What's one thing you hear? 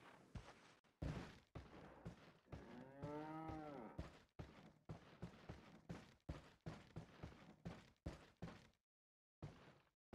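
Footsteps thud on wooden floorboards indoors.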